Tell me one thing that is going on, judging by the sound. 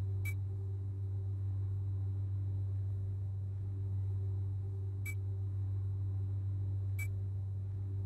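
A menu selection clicks with a short, sharp tick.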